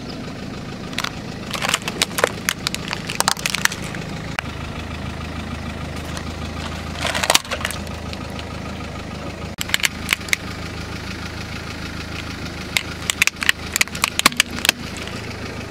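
Plastic toys crack and snap under a rolling car tyre.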